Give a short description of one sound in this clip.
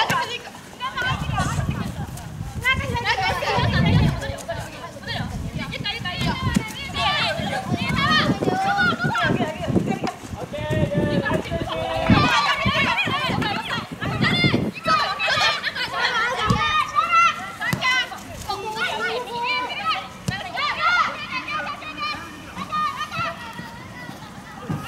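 Young women shout and call to each other across an open outdoor field.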